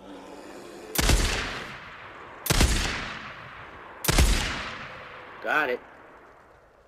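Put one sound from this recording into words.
A rifle fires loud shots that echo and fade.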